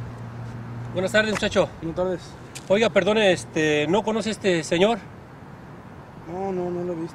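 An older man speaks calmly nearby.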